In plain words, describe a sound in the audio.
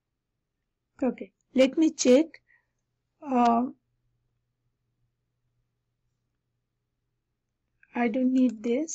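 A young woman speaks calmly and close to a headset microphone, in short bursts.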